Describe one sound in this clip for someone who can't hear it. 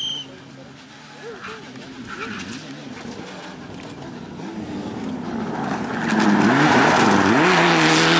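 A rally car engine roars louder as the car approaches.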